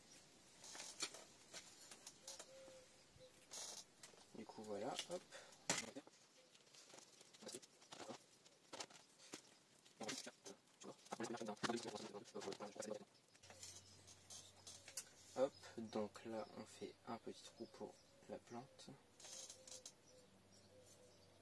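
A metal trowel scrapes and scoops soil.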